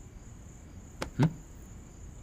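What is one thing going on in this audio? A hand thumps on a padded bed.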